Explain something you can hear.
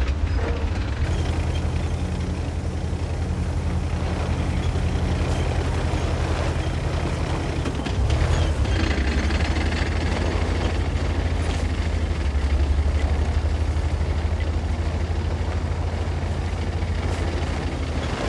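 A heavy tank engine rumbles steadily and deeply.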